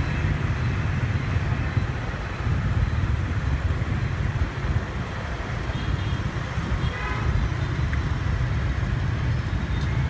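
Motor scooter engines hum in traffic.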